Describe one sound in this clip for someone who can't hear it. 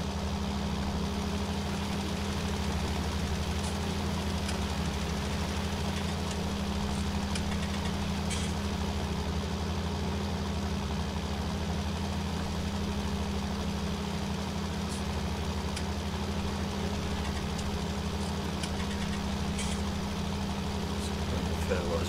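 A tractor engine drones steadily at low revs.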